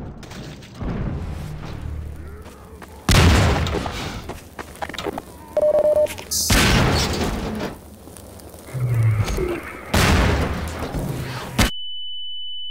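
Loud explosions boom and crackle.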